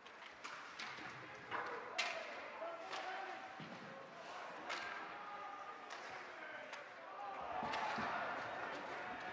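A crowd of spectators cheers and shouts in an echoing rink.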